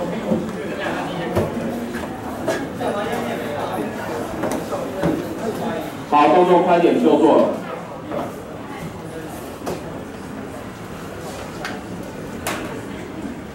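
A young man speaks into a microphone through loudspeakers in an echoing room.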